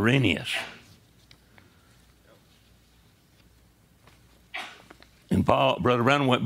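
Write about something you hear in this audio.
An elderly man speaks with animation, pausing between phrases.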